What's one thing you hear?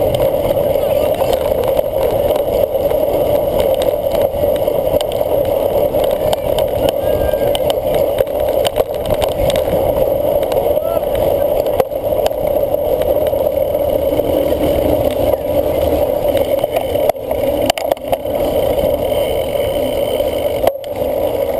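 Wind rushes past the microphone on a moving cyclocross bike.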